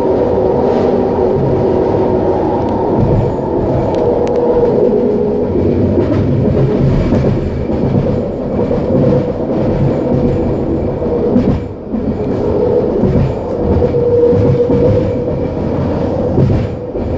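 A train hums and rumbles steadily along elevated tracks.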